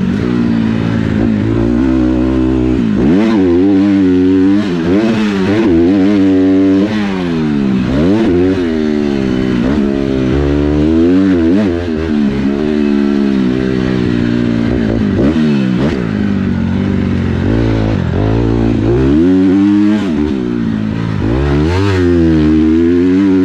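A dirt bike engine revs hard up close, its pitch rising and falling with each gear change.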